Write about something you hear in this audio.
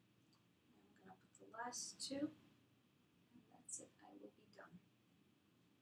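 A young woman speaks briefly and softly nearby.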